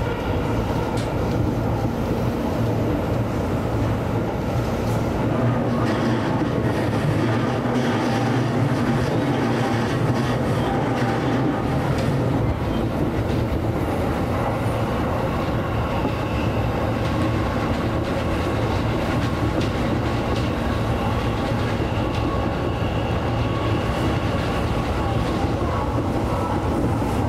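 A train rumbles steadily along the rails, heard from inside.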